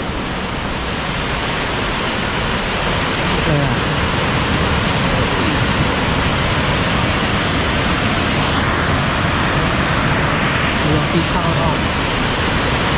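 A waterfall roars steadily outdoors.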